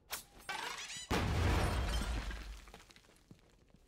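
Sparks burst and crackle loudly.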